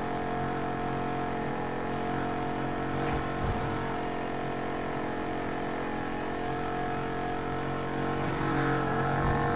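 A car engine drones at high revs.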